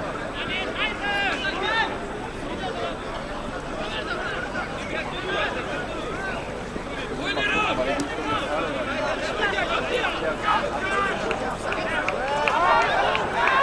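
A large crowd of spectators chatters and shouts outdoors.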